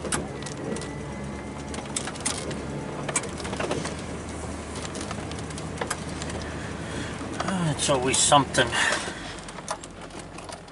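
Tyres crunch and knock over a bumpy snowy road.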